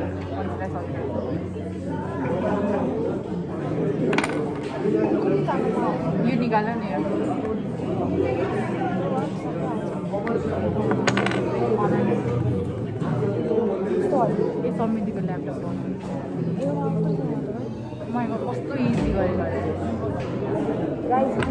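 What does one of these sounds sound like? Young women chat and laugh close by.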